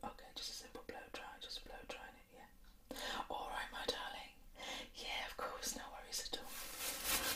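A woman speaks softly and close to a microphone.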